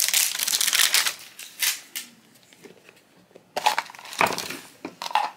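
A plastic capsule snaps open with a click.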